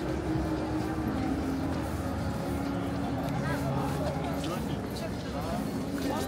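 A crowd of people chatter in a busy street outdoors.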